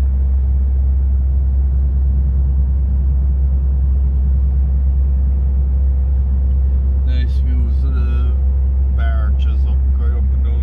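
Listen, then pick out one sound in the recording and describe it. A vehicle engine rumbles steadily with road noise from inside a moving vehicle.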